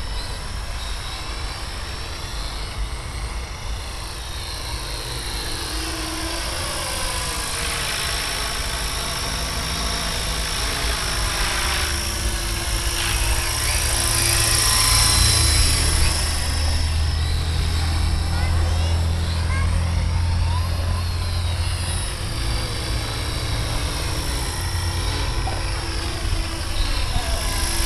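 Rotor blades whir and thump steadily.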